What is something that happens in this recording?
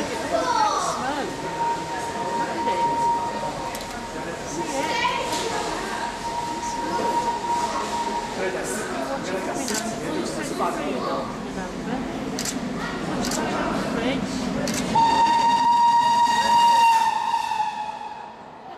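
A steam locomotive whistle blows long, steady blasts.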